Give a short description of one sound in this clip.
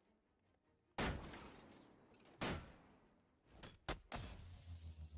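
Heavy punches and kicks land with loud, sudden thuds.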